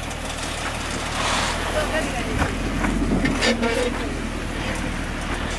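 Tyres churn and spray loose sand.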